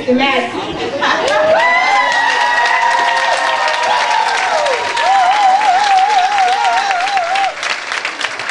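A congregation sings together in a large echoing hall.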